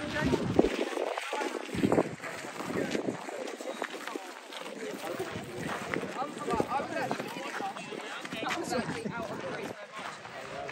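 A crowd chatters nearby outdoors.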